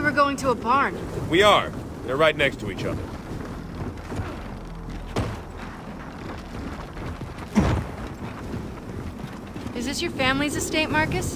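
Heavy armoured footsteps tread steadily over the ground.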